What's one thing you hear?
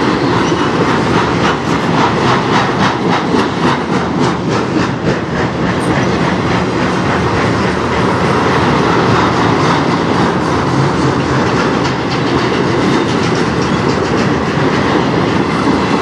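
Steel wheels clatter rhythmically over rail joints.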